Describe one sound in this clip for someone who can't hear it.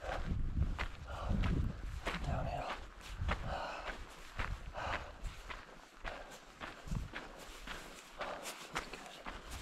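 Footsteps crunch steadily on a gravel path.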